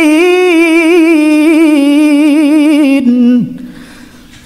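A young man chants in a long, wavering melodic voice through a microphone, then falls quiet.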